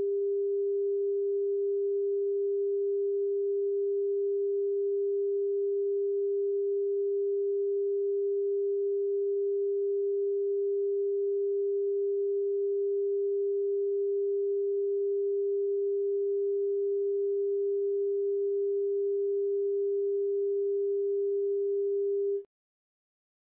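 A steady test tone hums without a break, then cuts off.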